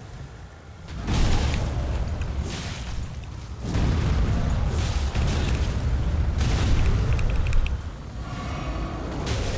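Heavy crashes and deep rumbling boom loudly.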